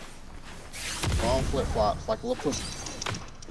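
Magical blasts whoosh and crackle.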